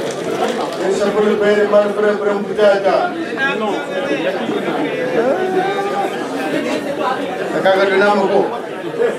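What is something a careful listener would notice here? A man speaks with animation through a microphone and loudspeakers.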